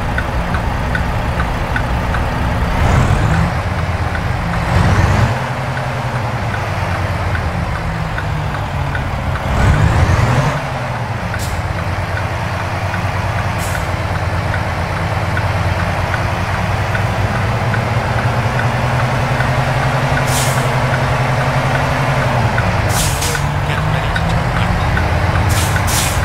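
A truck engine drones steadily, its pitch shifting slightly with the gears.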